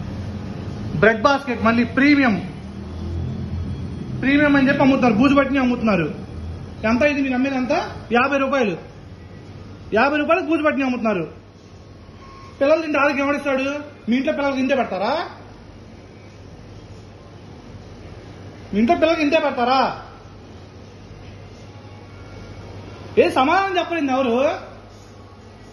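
A man talks close by in short, lively bursts with pauses between them.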